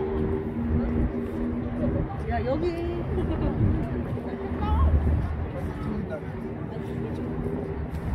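Young men and women chat nearby outdoors.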